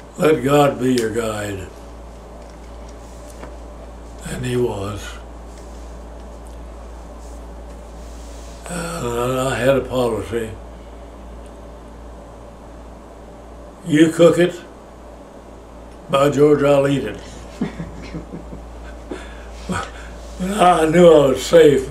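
An elderly man speaks calmly and slowly, close by, in bursts with long pauses.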